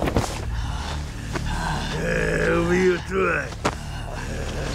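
A man speaks angrily in a rough voice, close by.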